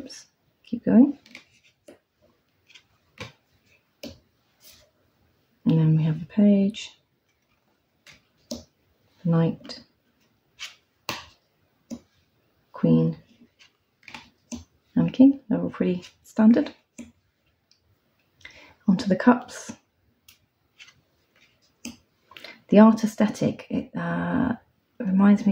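Cards slide and flick against each other as they are turned over.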